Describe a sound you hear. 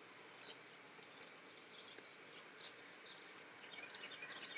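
A small bird chirps softly.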